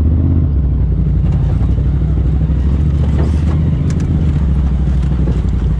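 An off-road vehicle's engine rumbles steadily while crawling.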